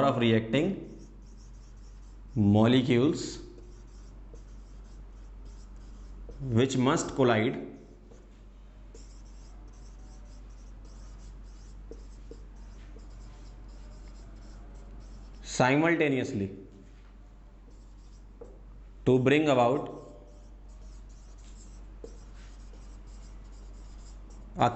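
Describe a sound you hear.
A marker squeaks and scratches on a whiteboard.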